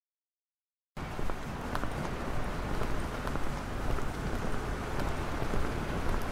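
Footsteps shuffle slowly along a pavement.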